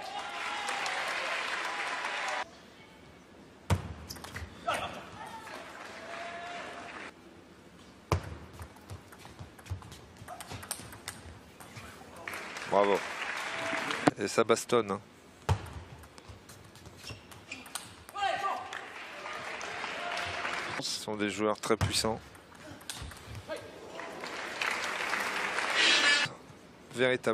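A crowd claps and cheers in a large echoing hall.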